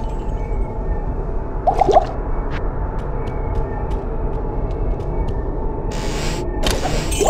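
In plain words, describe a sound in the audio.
A low, dark drone hums steadily throughout.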